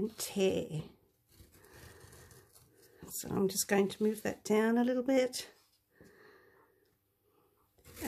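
Paper tears slowly.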